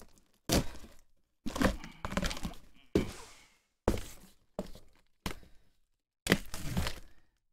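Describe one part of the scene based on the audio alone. A man taps and slaps on a cardboard box in short bursts.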